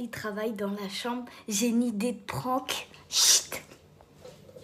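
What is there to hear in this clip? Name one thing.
A young woman speaks playfully and quietly, close by.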